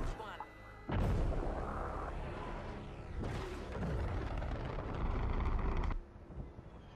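A rocket engine roars as a missile launches.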